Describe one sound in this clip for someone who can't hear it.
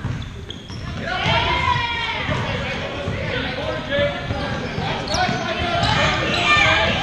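Spectators shout and cheer from nearby seats.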